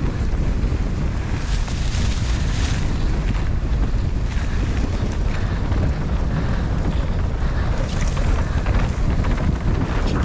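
Bicycle tyres rumble and crunch over a rough dirt trail.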